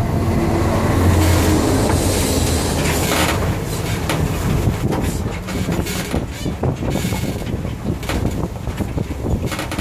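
Tyres crunch over gravel as a truck rolls along.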